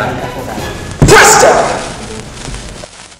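A toy blaster fires with a bang.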